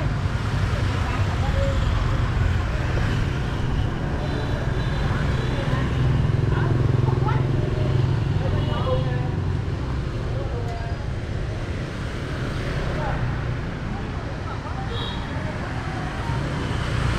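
Traffic rumbles steadily outdoors.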